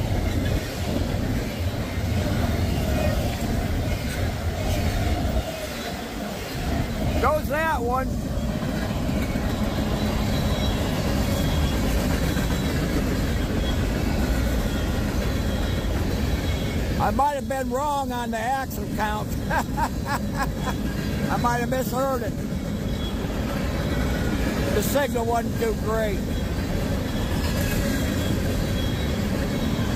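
A long freight train rumbles past close by on the tracks.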